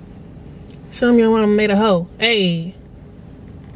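A young woman hums or sings a short, wavering tune close by.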